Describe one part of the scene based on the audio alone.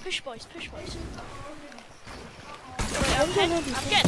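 Water splashes as a game figure swims.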